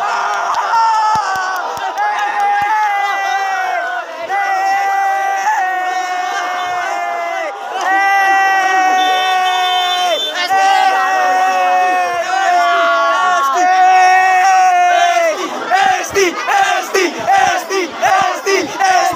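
A crowd of young people cheers and chants loudly outdoors.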